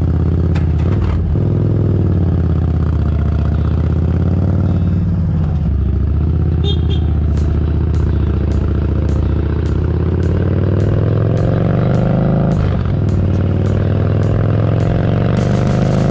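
A motorcycle engine rumbles steadily, its pitch rising and falling as the rider speeds up and shifts gears.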